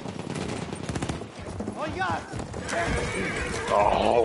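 A horse's hooves clatter at a gallop on hard ground.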